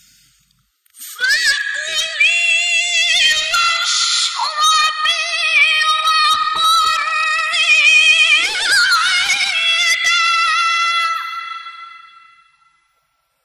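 A young woman chants melodiously into a microphone, heard through loudspeakers with a slight echo.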